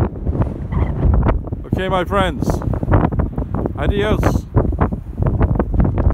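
Wind blows and rumbles outdoors.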